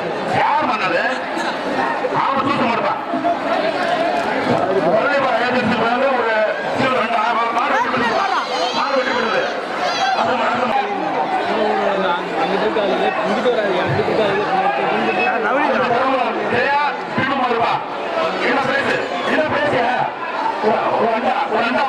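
A large crowd of men shouts and cheers loudly outdoors.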